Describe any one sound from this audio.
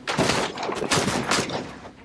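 A pistol fires several rapid shots.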